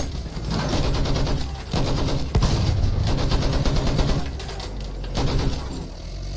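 A light tank's tracks clank and rattle.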